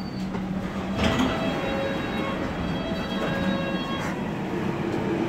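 A subway train's brakes squeal as it pulls into a station.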